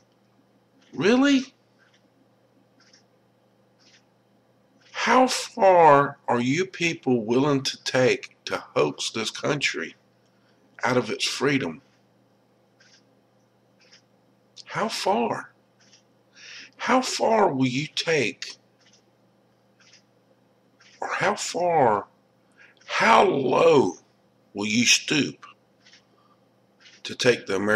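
A young man speaks with animation, close to a microphone, in short bursts with pauses.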